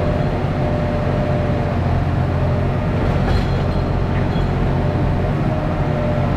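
Hydraulics whine as the excavator's controls are worked.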